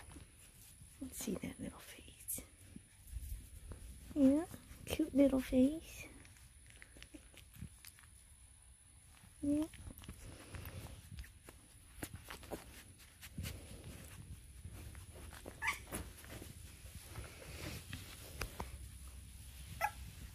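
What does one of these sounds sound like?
A woman speaks softly and affectionately, close by.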